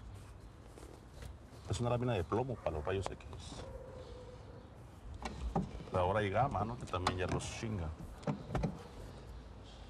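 A heavy plate scrapes and knocks as hands move it.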